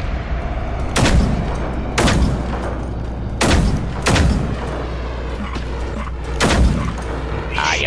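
A heavy rifle fires loud single shots with a booming echo.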